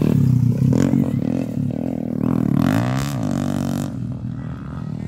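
A dirt bike engine revs up and down as it passes close by.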